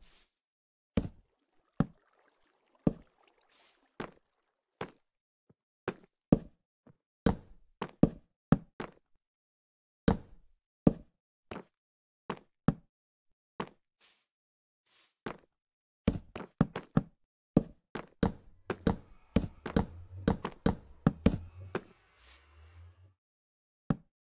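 Stone blocks are placed one after another with short, dull thuds.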